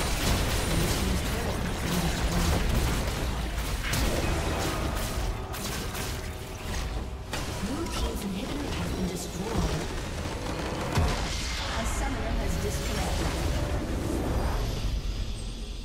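Game spell effects crackle and blast during a fight.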